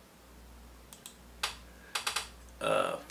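A computer mouse clicks a few times.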